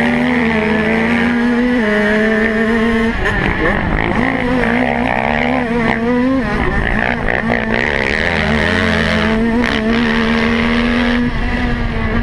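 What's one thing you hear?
A dirt bike engine roars close by, rising and falling in pitch as the rider shifts gears.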